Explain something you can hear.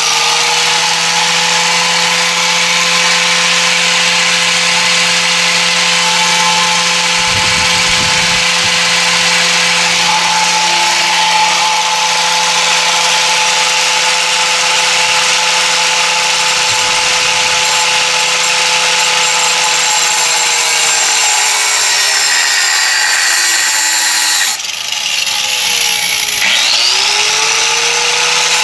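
An angle grinder grinds against metal with a harsh, rasping hiss.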